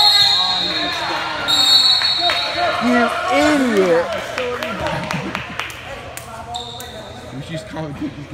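Sneakers squeak sharply on a hardwood floor in an echoing gym.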